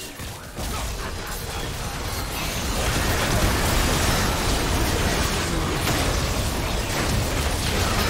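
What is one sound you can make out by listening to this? Spell effects whoosh and crackle as game characters fight.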